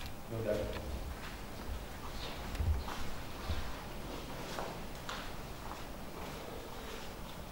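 Feet shuffle softly on a padded mat.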